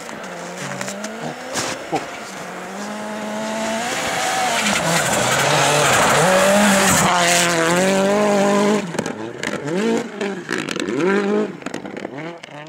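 A rally car engine revs hard through gear changes as the car approaches and passes close.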